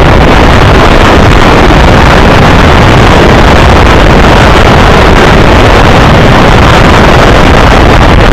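Two trains pass each other at speed with a loud, steady roar.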